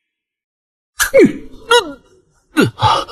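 A young man exclaims in surprise.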